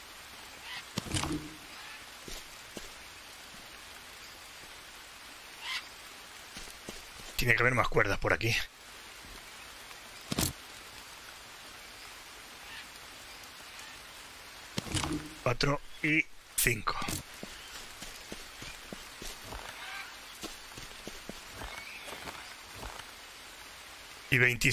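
Footsteps crunch softly on leafy forest ground.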